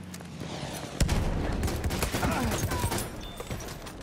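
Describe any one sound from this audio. A rifle fires with a loud crack and a rumbling echo.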